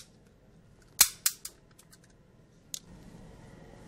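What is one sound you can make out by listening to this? A pistol fires a few sharp shots in an echoing room.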